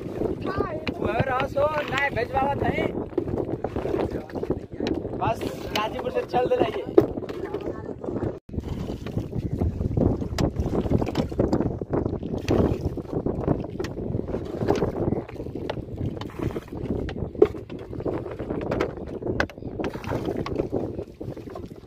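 Water laps against the side of a small boat.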